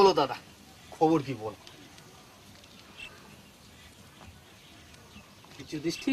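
A man answers in a lively voice, close by.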